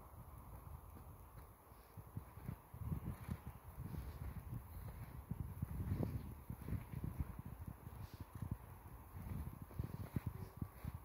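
Wind gusts outdoors in the snow, rumbling in bursts.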